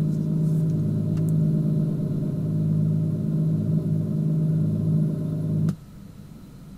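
A car engine idles with a steady low rumble, then cuts off.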